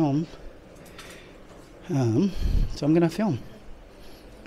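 A young man speaks briefly nearby.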